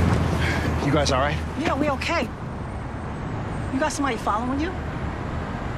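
A woman speaks in a frightened voice close by.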